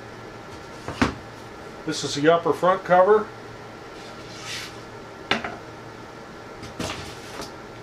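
A wooden board knocks and clatters on a wooden box.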